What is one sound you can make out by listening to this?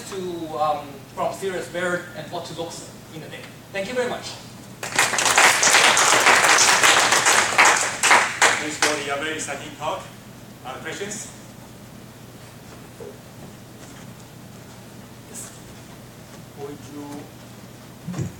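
A man speaks calmly through a microphone in a large room.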